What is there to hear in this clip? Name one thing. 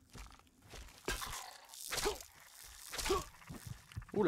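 A wooden rifle stock strikes a creature with heavy thuds.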